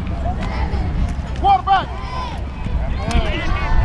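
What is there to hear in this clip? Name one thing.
Football players' pads clack together as they collide.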